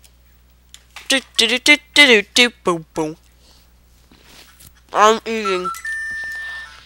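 Quick electronic game blips fall in pitch one after another.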